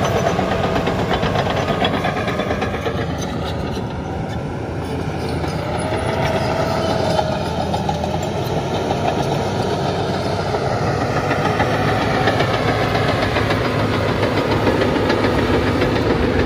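Bulldozer tracks clank and squeak as the machine moves.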